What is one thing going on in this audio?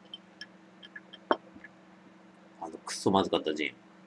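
A glass knocks softly as it is set down on a table.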